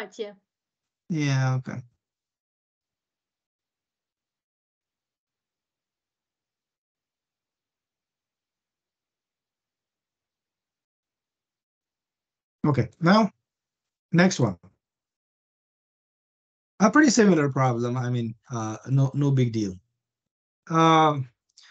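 A man speaks calmly through an online call, in short bursts with pauses.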